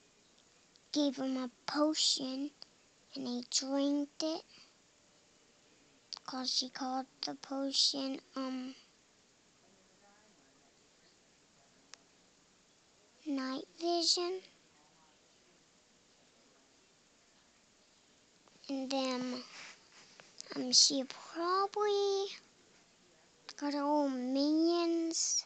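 A young girl talks softly and close to the microphone, in short bursts with pauses.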